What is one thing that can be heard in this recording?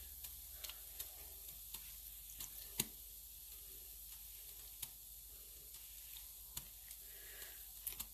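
Wet yarn splashes and drips into a pot of water.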